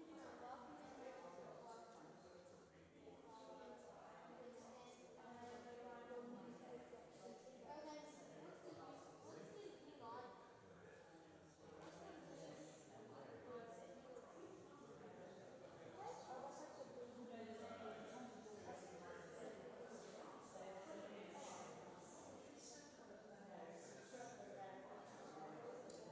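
A woman speaks calmly in a large echoing hall.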